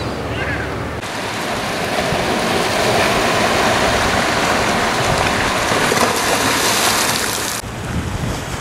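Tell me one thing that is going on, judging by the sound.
Waves wash and splash against rocks.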